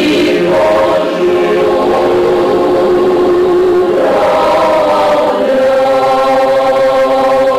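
A choir of men and women sings together in sustained, steady notes.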